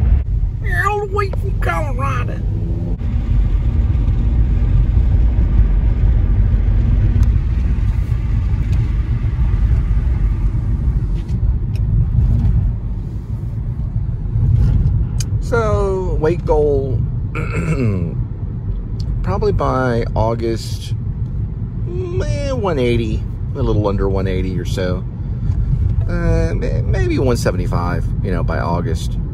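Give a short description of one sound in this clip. A car's tyres and engine rumble steadily on the road.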